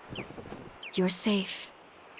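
A woman speaks softly and anxiously.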